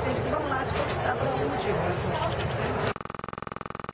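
A middle-aged woman speaks with animation close to the microphone.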